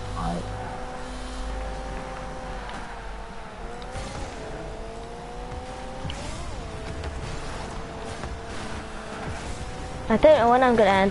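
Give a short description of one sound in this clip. A video game car engine hums, its pitch rising and dipping.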